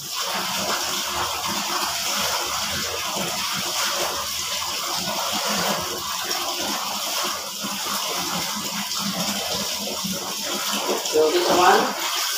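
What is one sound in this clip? Clothes slosh and splash in a basin of water.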